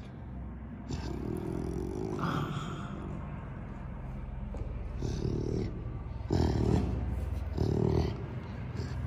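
A tiger cub growls and mews close by.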